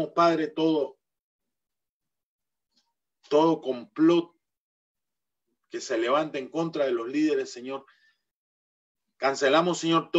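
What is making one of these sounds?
A middle-aged man speaks calmly in pauses over an online call.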